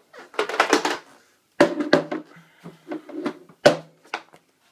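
A hard case knocks and scrapes on a hard floor.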